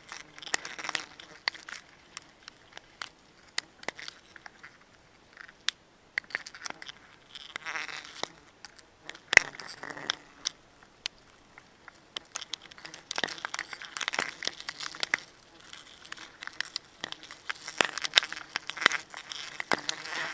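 Clicks and knocks ring out as climbing gear strikes against a tree trunk.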